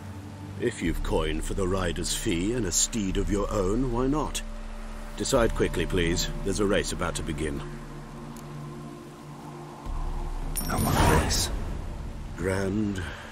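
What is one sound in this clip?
Another man speaks briskly and politely.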